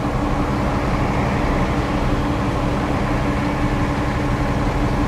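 A bus engine hums steadily in a low drone.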